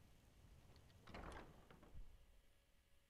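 A heavy wooden door creaks and thuds open.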